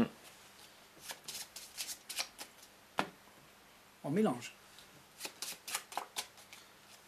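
Playing cards tap and slide on a cloth mat.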